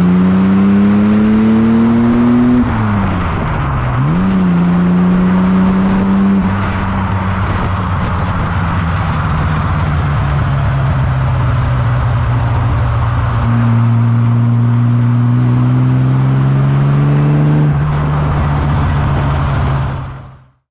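A Jaguar E-Type's straight-six engine burbles while cruising on a road.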